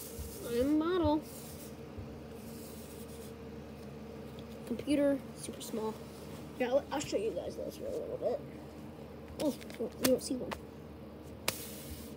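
Paper cutouts rustle softly as they are slid across a carpet.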